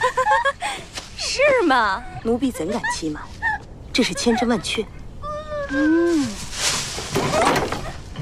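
A young woman shrieks.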